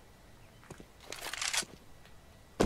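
A rifle is drawn with a metallic rattle.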